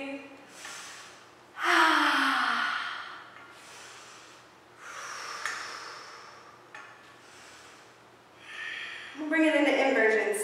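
A woman breathes in and out deeply and slowly.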